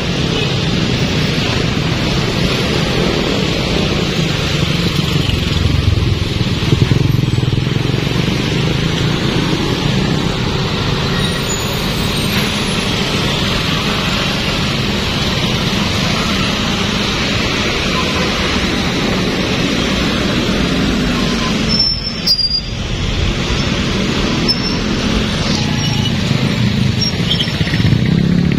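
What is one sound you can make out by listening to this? Car engines hum in a busy street.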